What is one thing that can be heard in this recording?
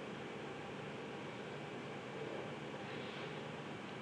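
A plastic ruler slides across paper.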